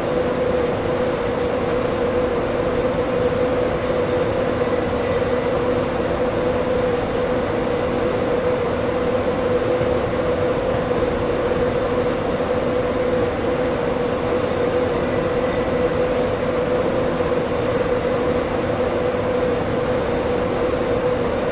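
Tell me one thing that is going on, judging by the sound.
Train wheels rumble over the rails.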